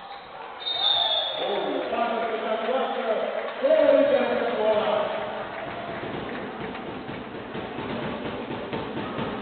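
A crowd cheers and shouts in the hall.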